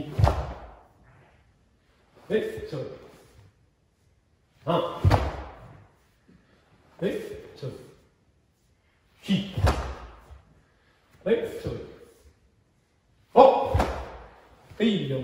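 A cotton uniform snaps with quick punches and kicks.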